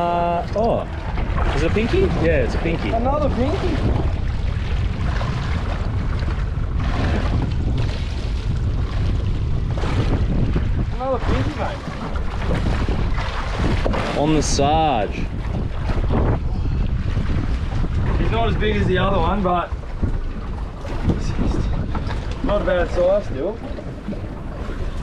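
Wind blows steadily outdoors over open water.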